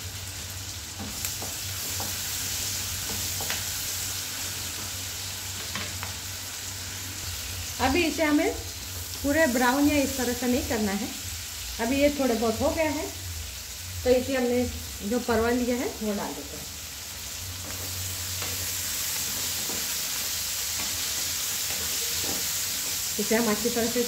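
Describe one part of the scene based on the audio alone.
A wooden spatula scrapes and knocks against a pan as food is stirred.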